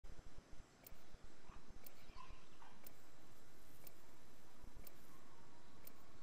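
Water rushes steadily along a river.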